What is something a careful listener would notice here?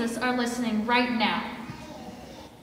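A group of children sings the last held note of a song in a large echoing hall.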